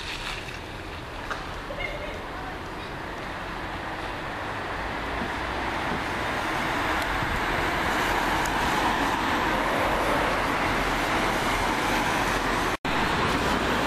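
A car engine and tyres hum steadily on a wet road, growing louder.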